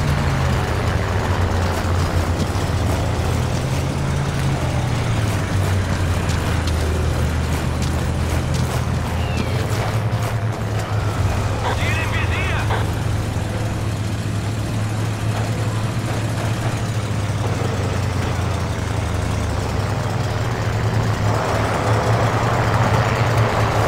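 Footsteps crunch on dirt and gravel.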